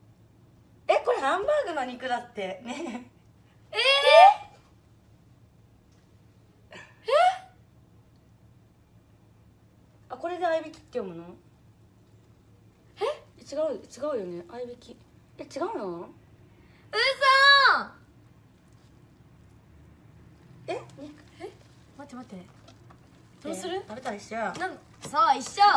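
A child talks with animation close by, in short bursts.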